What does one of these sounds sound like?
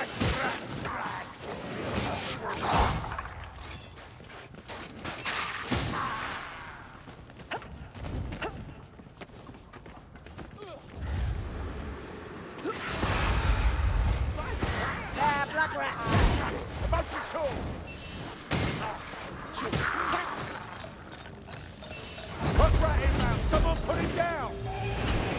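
Heavy weapon blows thud and slash into bodies.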